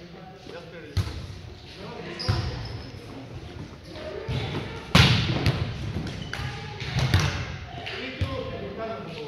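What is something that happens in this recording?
A volleyball is struck by hand with sharp smacks that echo around a gym.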